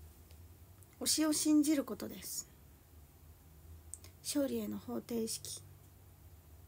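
A young woman speaks softly and close to a microphone, in short bursts.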